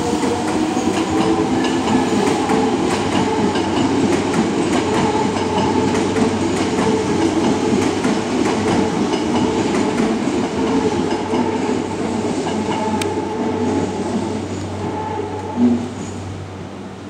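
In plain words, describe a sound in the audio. A train rumbles and clatters along the tracks close by, then fades.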